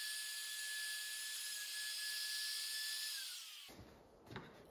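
A router whines steadily while cutting wood, then winds down.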